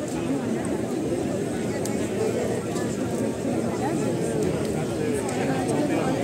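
A bonfire crackles and roars.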